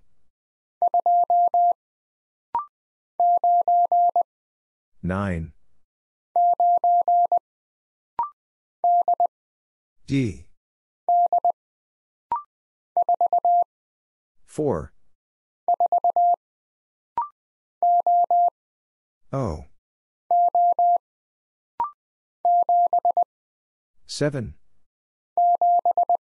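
Morse code beeps in short, rapid bursts of a steady tone.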